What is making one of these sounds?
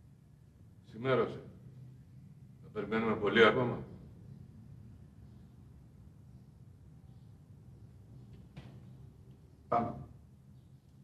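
A man speaks in short, loud bursts nearby.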